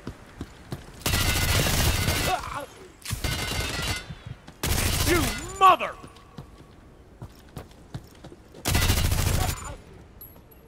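An automatic rifle fires in loud, rapid bursts.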